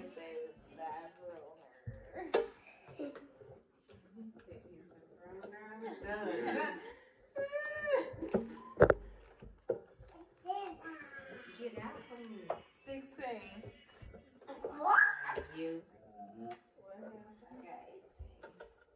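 A young boy laughs and talks excitedly close by.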